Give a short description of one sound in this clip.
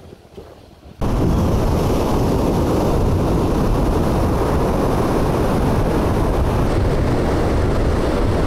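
Waves wash steadily onto a beach.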